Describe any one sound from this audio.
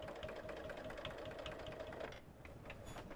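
A sewing machine stitches rapidly with a steady hum, then stops.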